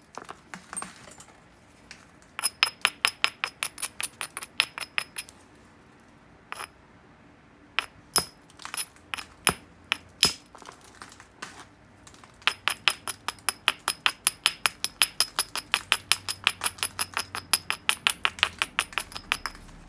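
A stone hammer taps rapidly against the edge of a piece of glassy rock, making sharp clicking chips.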